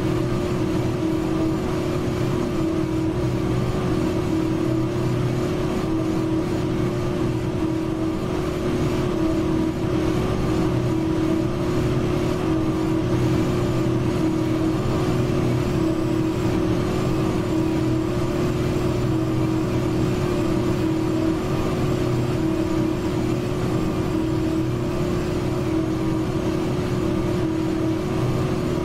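A bus engine hums steadily as the bus drives along a winding road.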